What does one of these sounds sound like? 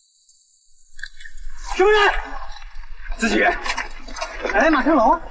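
Footsteps tramp through undergrowth.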